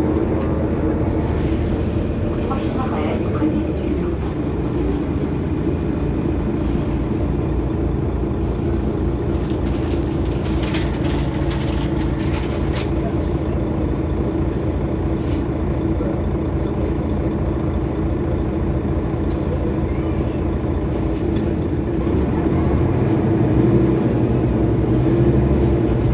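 A bus engine idles close by with a steady low rumble.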